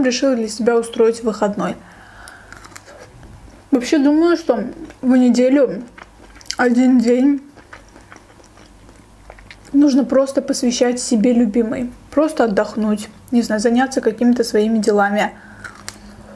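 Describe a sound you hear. A young woman talks softly and closely into a microphone.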